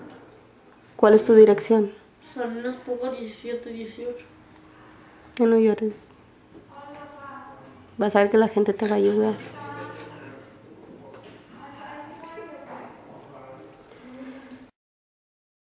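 A boy speaks tearfully close by, with pauses.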